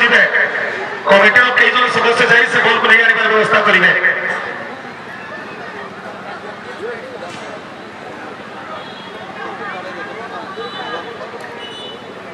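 A large outdoor crowd of spectators cheers and shouts loudly, then settles to a murmur.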